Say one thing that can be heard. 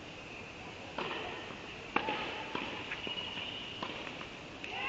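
Tennis balls are struck with sharp pops that echo in a large indoor hall.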